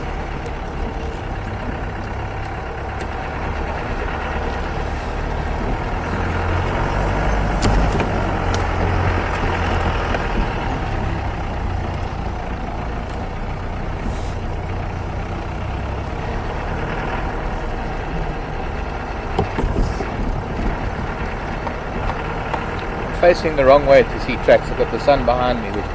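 A vehicle rattles and bumps over uneven ground.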